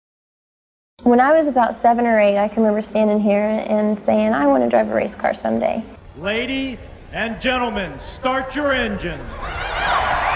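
A young woman speaks calmly into a clip-on microphone.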